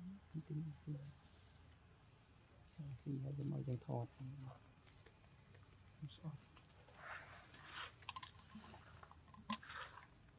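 Leaves rustle and crunch as a monkey walks through the undergrowth.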